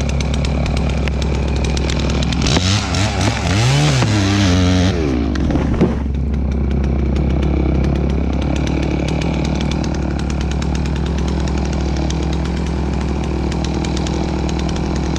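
A chainsaw engine idles steadily close by.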